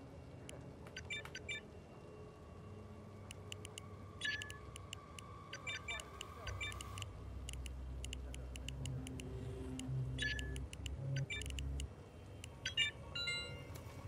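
Keypad buttons beep as a code is entered.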